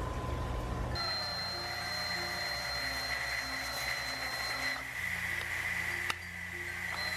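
A cordless drill whirs steadily as it drives a screw.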